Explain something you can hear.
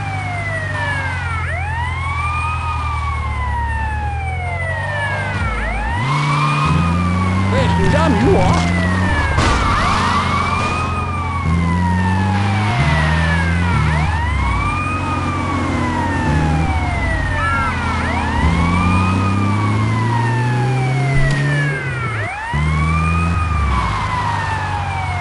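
An armoured police van's engine accelerates through its gears.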